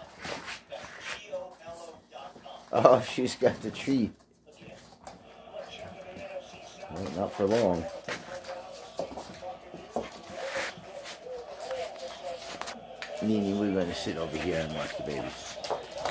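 Dog paws patter and scratch on a wooden floor.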